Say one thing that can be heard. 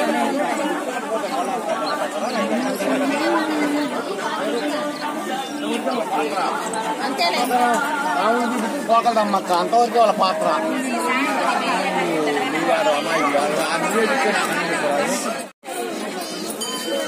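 A crowd of women and men chatter loudly close by.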